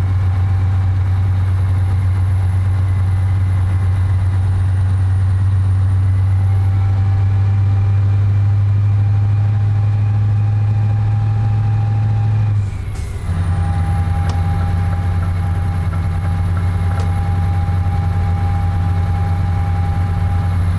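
A truck engine hums steadily at highway speed.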